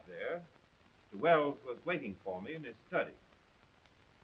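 An elderly man speaks in short phrases, heard through an old, thin recording.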